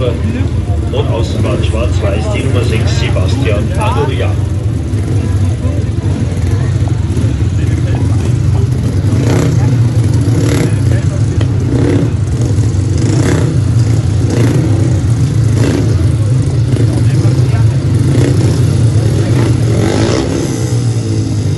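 Motorcycle engines rev loudly and unevenly close by.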